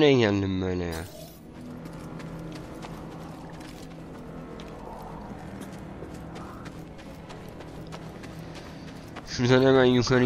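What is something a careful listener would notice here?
Footsteps patter quickly on rocky ground.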